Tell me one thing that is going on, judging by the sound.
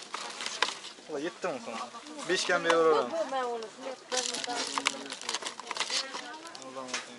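A plastic box rustles and clicks as it is handled.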